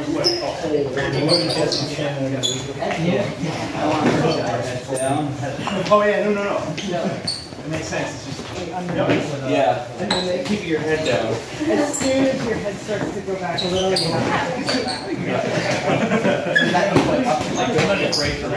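Several men and women talk and call out in a large echoing hall.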